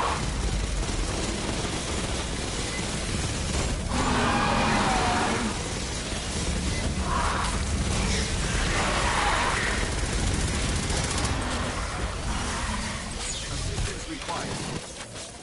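Rapid gunfire rattles continuously.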